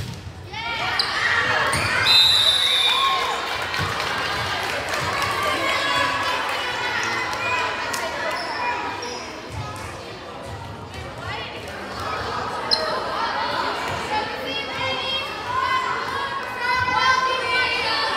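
A crowd of spectators cheers and shouts loudly in an echoing gym.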